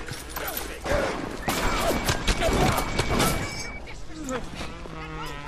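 A pistol fires loud shots.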